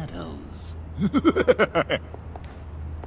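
A man chuckles.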